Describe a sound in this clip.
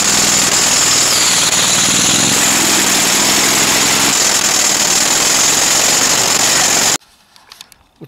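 A small engine roars loudly and steadily.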